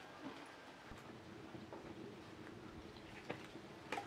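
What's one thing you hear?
A small wood fire crackles.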